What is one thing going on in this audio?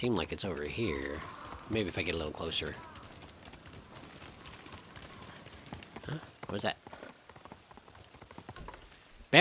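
A horse gallops, its hooves thudding on a dirt road.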